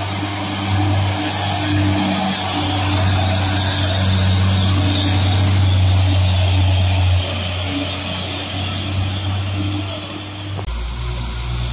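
A heavy truck engine rumbles loudly as the truck drives past.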